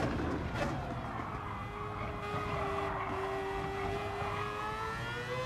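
A racing car engine drones loudly, its pitch dropping as it slows and then climbing again.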